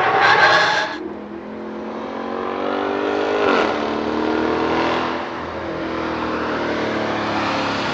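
A sedan's engine revs as it drives by.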